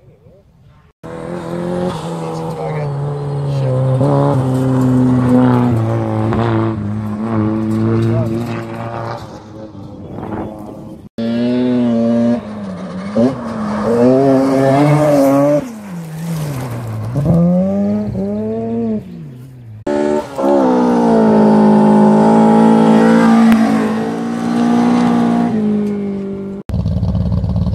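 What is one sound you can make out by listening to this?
A rally car engine roars past at high revs, rising and falling in pitch.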